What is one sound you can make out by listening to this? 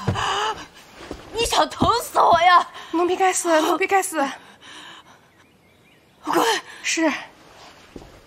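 A young woman pleads anxiously, close by.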